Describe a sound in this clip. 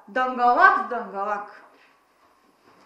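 A young woman speaks close by with animation.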